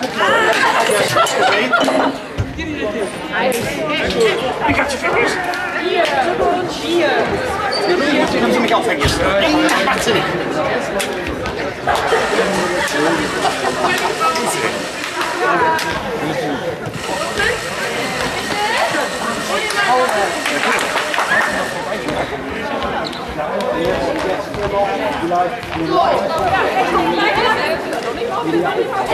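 A crowd of young women and men chatter and cheer in a large echoing sports hall.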